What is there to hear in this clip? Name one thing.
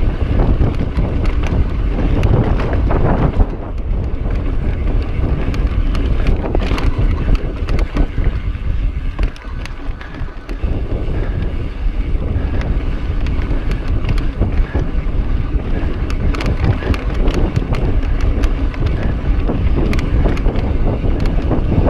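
Wind rushes loudly past a bike rider.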